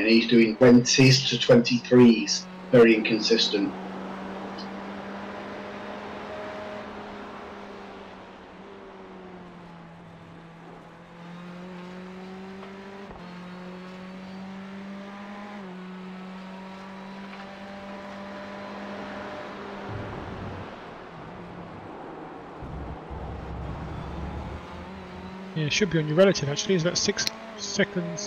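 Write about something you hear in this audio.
A race car engine drones steadily, its pitch stepping up and down with gear changes.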